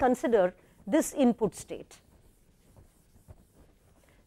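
A cloth eraser wipes across a board.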